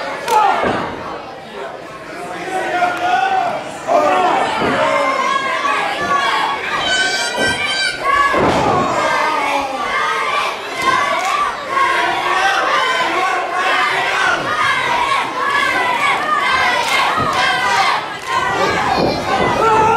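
A crowd of children and adults shouts and cheers loudly in an echoing hall.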